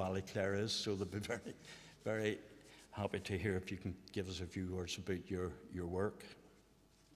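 An older man speaks calmly into a microphone in a large echoing hall.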